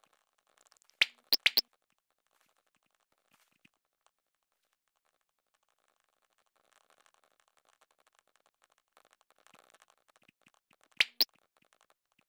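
A short electronic notification chime sounds twice.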